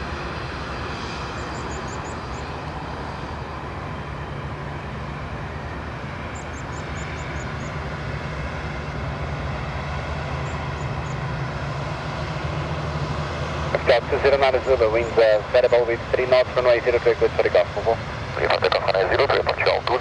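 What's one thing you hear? A jet airliner's engines hum and whine steadily as it taxis past nearby.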